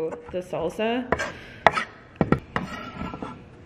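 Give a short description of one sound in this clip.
A knife chops quickly on a wooden board.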